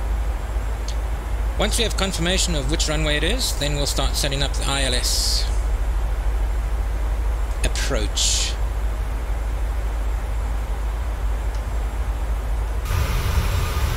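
Jet engines hum steadily from inside a cockpit.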